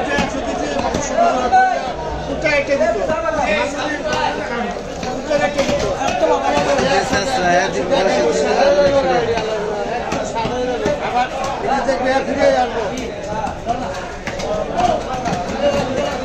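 A cleaver chops through fish onto a wooden block with sharp thuds.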